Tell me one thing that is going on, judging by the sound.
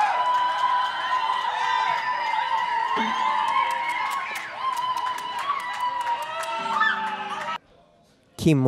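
A live band plays music with a singer.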